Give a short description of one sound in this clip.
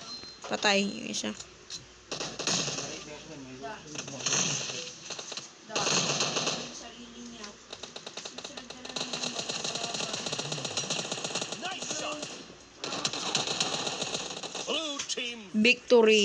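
Rifle shots fire in rapid bursts.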